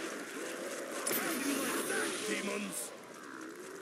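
A heavy energy weapon fires in loud bursts.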